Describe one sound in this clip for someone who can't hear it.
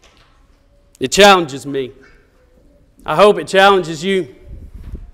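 A man speaks calmly through a microphone in a reverberant hall.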